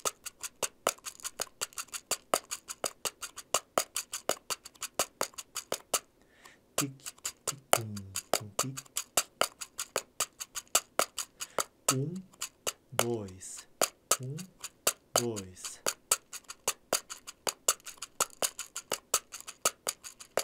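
Fingers tap and scratch rapidly on a small wooden box.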